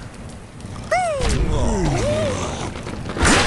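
A cartoon bird squawks as it flies through the air.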